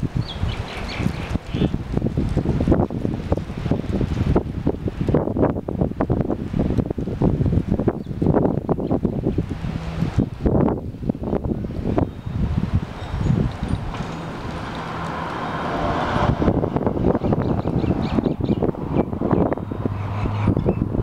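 Wind blows in strong, rumbling gusts outdoors.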